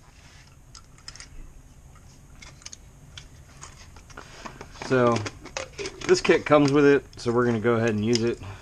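Plastic parts click and tap as they are handled.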